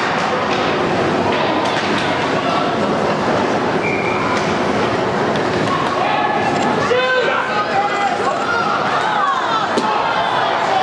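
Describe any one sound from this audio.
Skates scrape on the ice.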